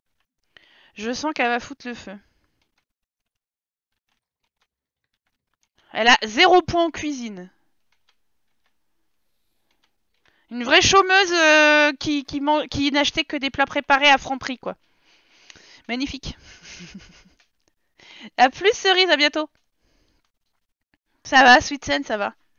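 A young woman talks with animation close to a microphone, in bursts with pauses.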